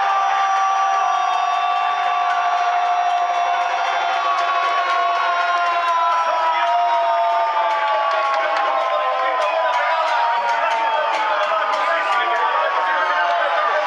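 A crowd of fans cheers and shouts outdoors.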